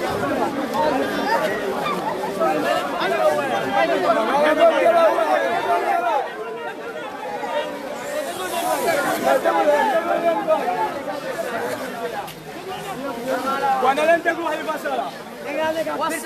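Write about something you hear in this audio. A large crowd of young men shout and chant loudly and excitedly close by, outdoors.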